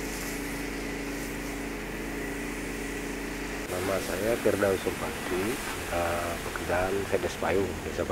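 Water sprays hard from a hose.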